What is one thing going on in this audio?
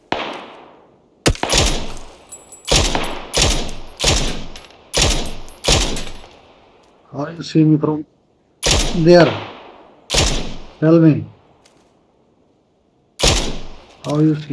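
Rifle shots ring out in quick succession with echoing tails.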